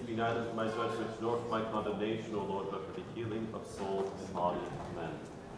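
A man chants in a low voice in a large echoing hall.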